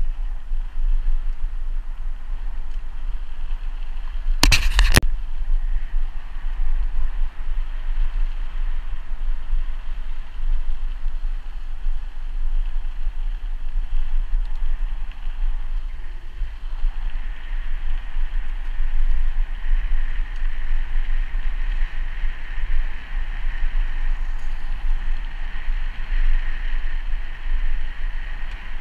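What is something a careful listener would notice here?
Wind rumbles and buffets against the microphone throughout.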